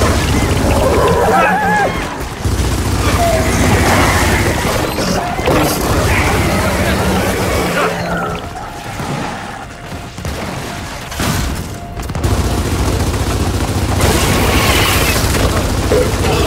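A creature screeches and squeals.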